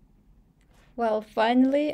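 A young woman speaks brightly and close into a microphone.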